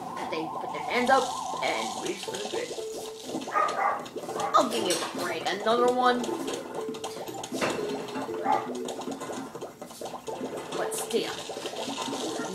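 Cheerful game music plays through a television speaker.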